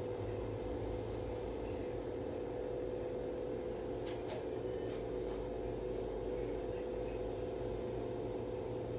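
The inside of a bus rattles softly over the road.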